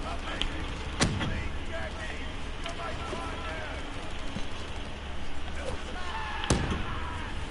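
A gun fires in sharp, single shots.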